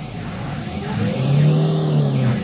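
A diesel light truck engine revs up, heard from inside the cab.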